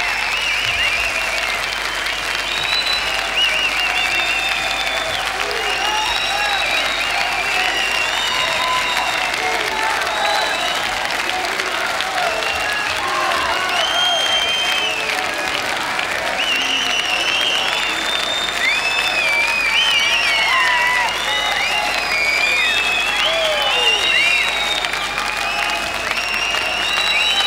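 Fans in a crowd whistle shrilly.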